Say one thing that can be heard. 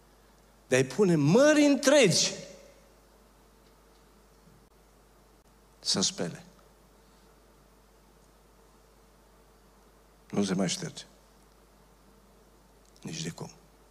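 A man speaks with animation into a microphone, in short bursts with long pauses.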